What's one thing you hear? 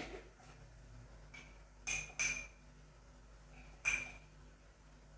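A metal spoon clinks against a glass jar.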